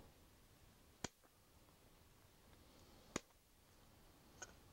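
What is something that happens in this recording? Small cutters snip sharply through plastic a few times.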